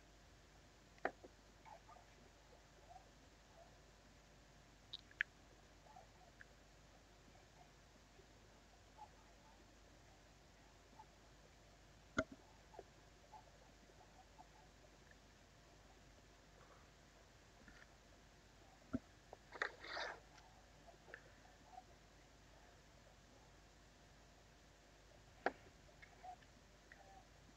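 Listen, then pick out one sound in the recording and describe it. Small plastic pieces click and tap as they are handled and fitted together.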